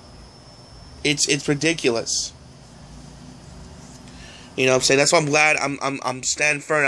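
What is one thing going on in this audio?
A young man speaks casually, close up.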